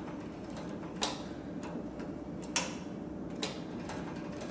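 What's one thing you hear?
Small clicks and taps come from a sewing machine being adjusted by hand.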